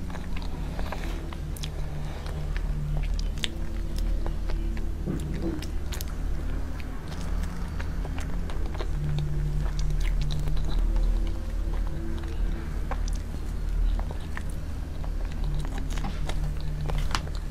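A young woman chews soft food with wet smacking sounds close to a microphone.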